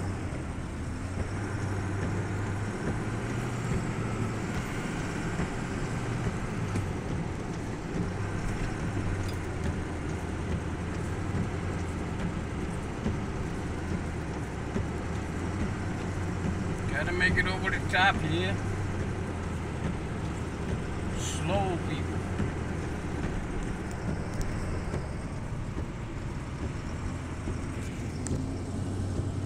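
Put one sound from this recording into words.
Tyres hiss on a wet, snowy road.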